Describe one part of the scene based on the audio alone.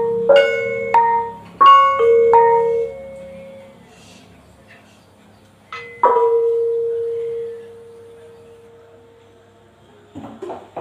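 Bronze gongs and metal bars are struck, ringing out in slow notes.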